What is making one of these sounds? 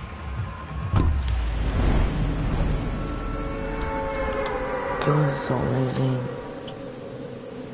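A deep, roaring rumble of fiery blasts sets in suddenly and goes on.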